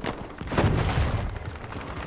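A rifle fires in rapid bursts nearby.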